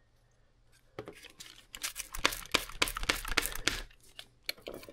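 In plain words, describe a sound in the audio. Cardboard rustles and scrapes under a hand.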